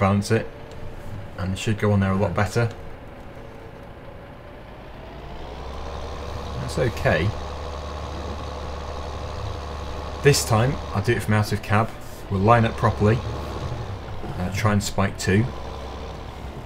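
A tractor engine hums steadily and revs up as the tractor drives off.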